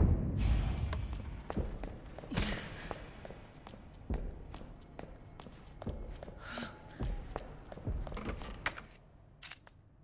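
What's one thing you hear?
Footsteps thud quickly up wooden stairs.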